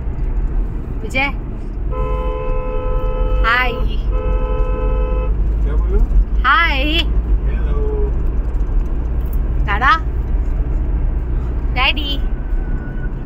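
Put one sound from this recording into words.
A middle-aged woman talks through an online call.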